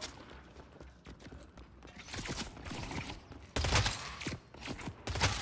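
Footsteps thud quickly on pavement.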